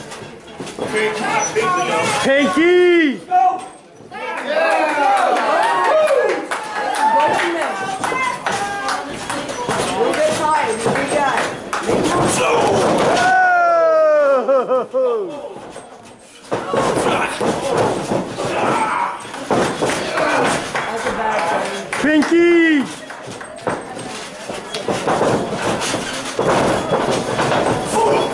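A small wrestling crowd shouts and cheers in an echoing hall.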